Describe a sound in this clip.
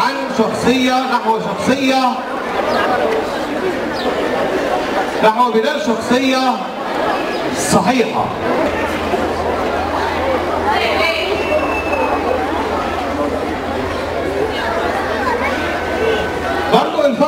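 A middle-aged man speaks into a microphone through loudspeakers outdoors.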